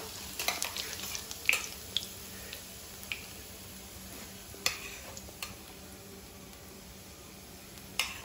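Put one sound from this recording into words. Cumin seeds sizzle and crackle in hot oil.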